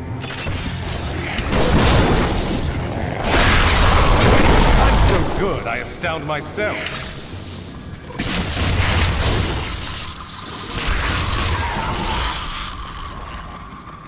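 Magic spells crackle and burst loudly in a game.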